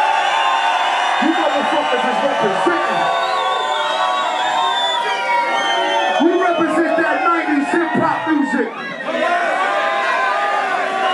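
A man raps loudly into a microphone over loudspeakers.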